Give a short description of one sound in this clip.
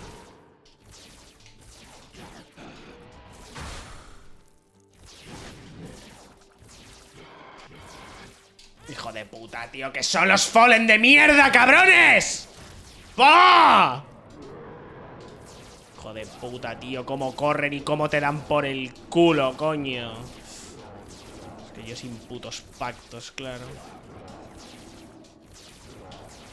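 Video game sound effects pop and splat in quick bursts.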